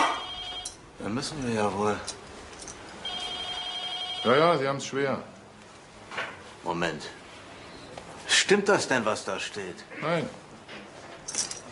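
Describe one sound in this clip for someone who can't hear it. An elderly man speaks with animation, close by.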